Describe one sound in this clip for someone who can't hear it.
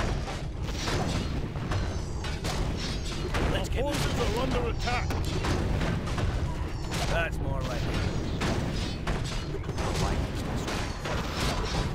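Game battle sounds of clashing weapons and spell impacts ring out throughout.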